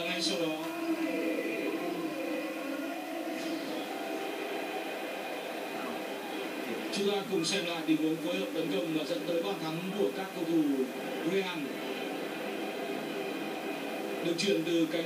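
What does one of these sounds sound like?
A stadium crowd murmurs and roars through a television speaker.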